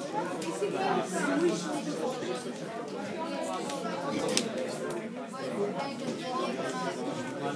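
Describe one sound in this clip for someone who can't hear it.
Playing cards are shuffled and tapped on a table.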